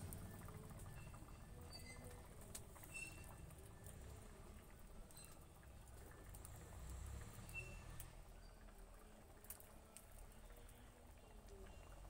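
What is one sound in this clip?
Water simmers and bubbles in a wok.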